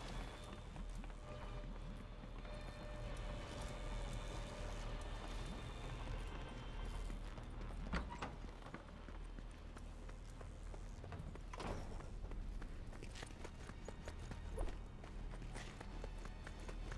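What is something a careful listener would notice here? Quick footsteps patter over wooden boards and grass.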